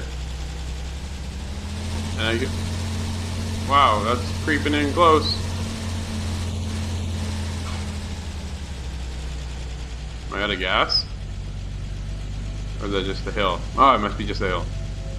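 A car engine hums steadily at low pitch.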